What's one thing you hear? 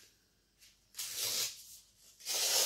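A tool rubs back and forth across paper.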